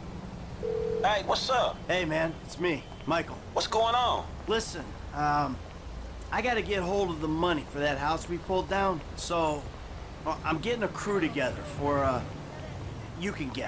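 A man talks calmly on a phone, heard close.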